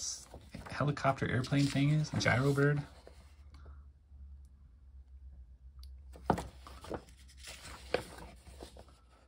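Paper pages rustle and flap as they are turned.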